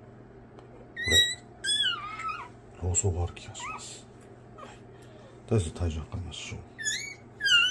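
A puppy squeals with high, wavering cries close by.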